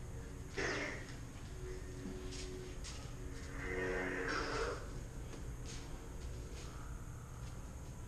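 Toy lightsabers hum and whoosh as they swing.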